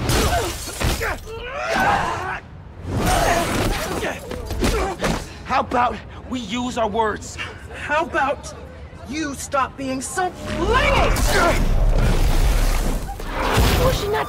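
Heavy blows thud and debris crashes during a fight.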